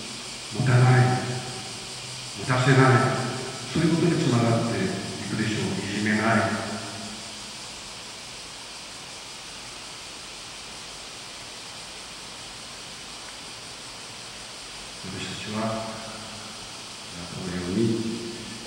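An elderly man speaks slowly through a microphone and loudspeakers in a large echoing hall.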